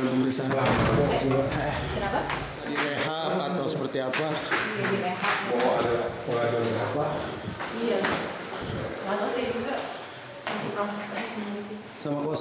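Footsteps tap on stairs.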